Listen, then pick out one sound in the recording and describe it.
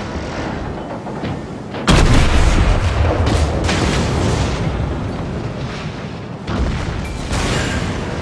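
Shells burst in dull explosions on a distant ship.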